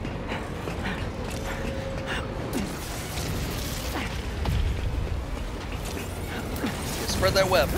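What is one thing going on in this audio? Metal debris crashes and clatters.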